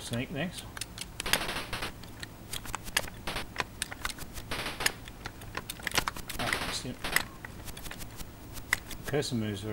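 Electronic blips from a retro video game fire in quick bursts.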